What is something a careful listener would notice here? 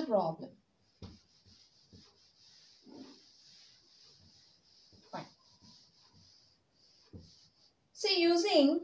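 A duster rubs across a chalkboard.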